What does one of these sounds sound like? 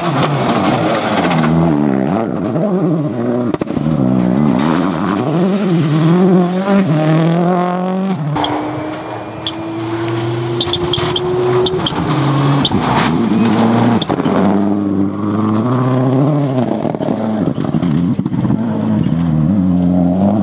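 Rally car engines roar loudly at high revs, rising and falling as the cars speed past.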